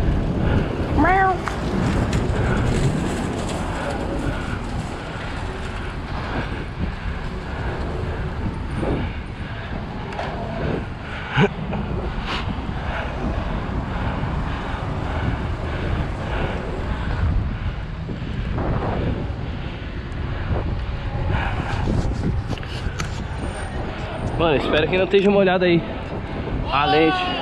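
Hard wheels roll and rumble over pavement.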